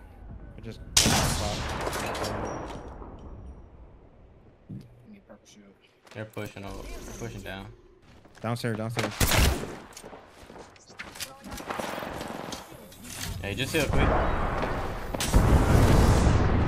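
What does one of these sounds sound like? Gunfire rings out with loud echoing blasts.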